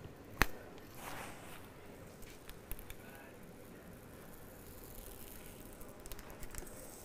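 A thin plastic film crinkles softly as it is peeled off a smooth surface.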